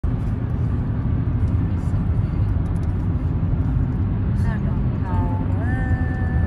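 A car engine hums steadily and tyres roar on the road, heard from inside the car.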